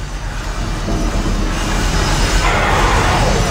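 Electric sparks crackle and hiss.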